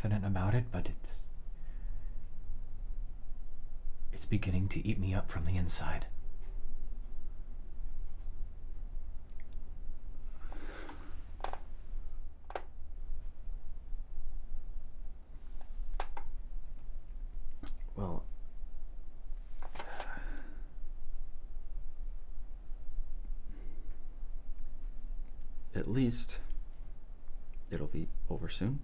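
A man speaks quietly and tensely, close by.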